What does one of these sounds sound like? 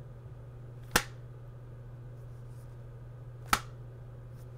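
A plastic game case clicks open and shut.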